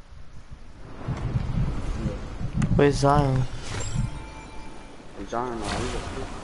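Rushing wind roars as a figure glides down from the sky.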